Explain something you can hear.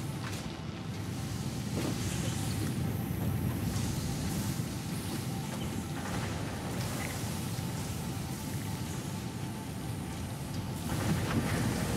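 Heavy machinery hums steadily.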